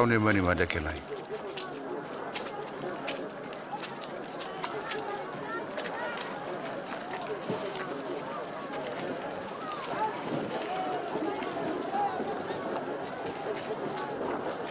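A crowd of men murmurs in the background.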